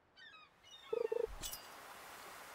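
A game chime sounds as a fish bites the line.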